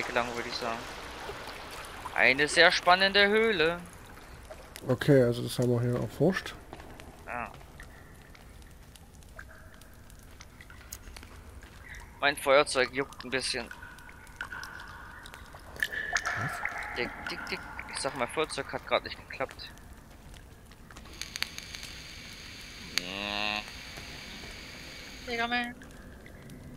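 A torch flame crackles and hisses.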